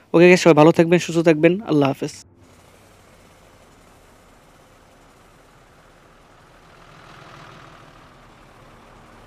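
A bus engine hums steadily as the bus drives along a road.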